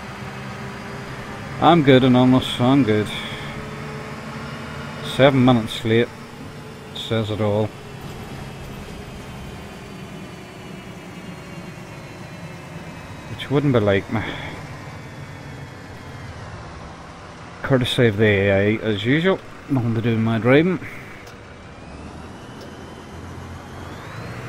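A diesel city bus engine hums as the bus drives.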